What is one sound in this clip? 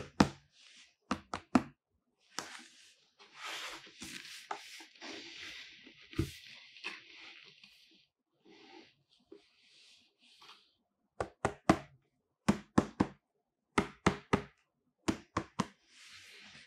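Gloved fingers tap and drum on a cardboard box.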